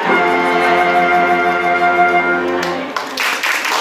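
A string ensemble and a flute hold a final chord together, then stop.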